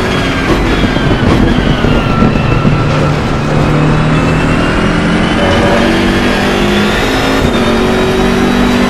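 A racing car engine roars loudly, its pitch rising and falling with gear changes.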